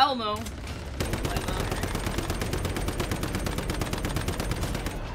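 An automatic gun fires rapid bursts.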